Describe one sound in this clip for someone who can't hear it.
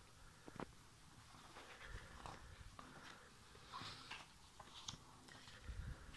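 A magazine page rustles as it is turned.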